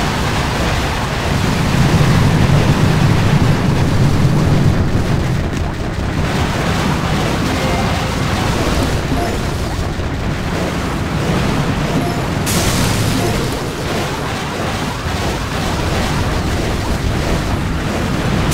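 Explosions and gunfire boom and crackle in a game battle.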